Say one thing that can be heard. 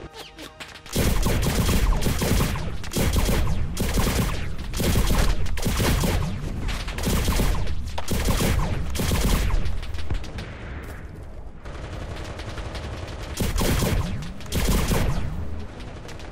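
Loud gunfire rattles in repeated bursts.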